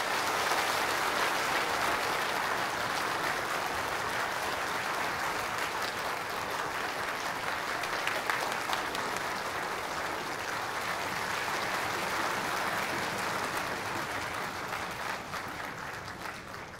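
A large audience applauds steadily in a big hall.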